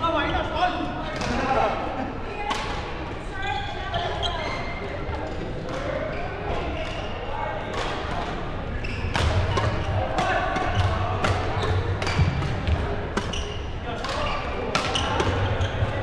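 Men call out and chatter across a large echoing hall.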